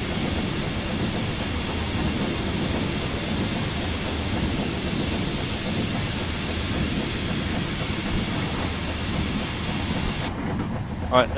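A steam locomotive rumbles steadily along the track.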